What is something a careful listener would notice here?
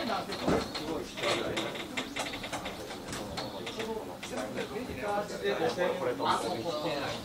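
A group of men chat and murmur close by.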